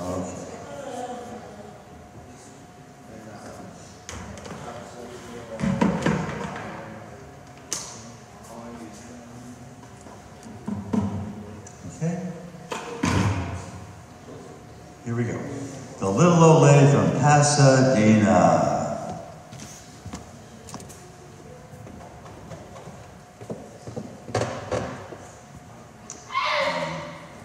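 An elderly man speaks calmly through a microphone and loudspeakers in a large echoing hall.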